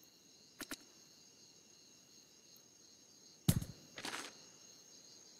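Game menu clicks tick softly.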